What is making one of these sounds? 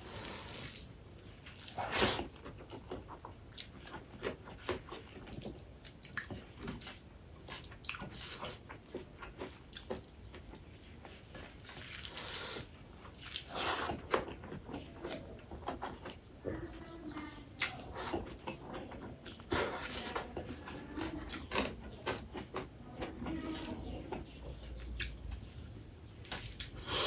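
A man chews food noisily and smacks his lips close to a microphone.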